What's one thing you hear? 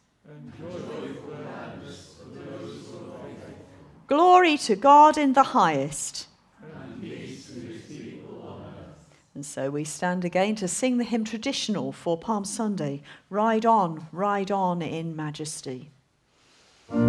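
A woman reads out aloud through a microphone.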